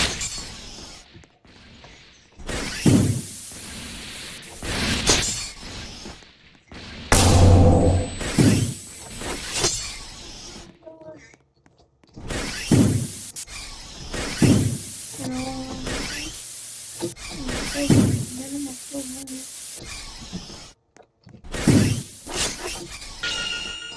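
Gas jets hiss and whoosh in short, repeated bursts.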